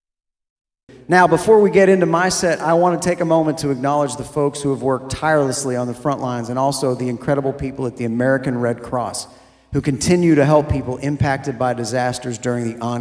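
A man sings into a microphone, amplified on a stage.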